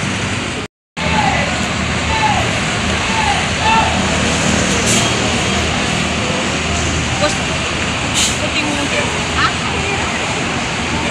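A bus engine rumbles as the bus pulls slowly forward.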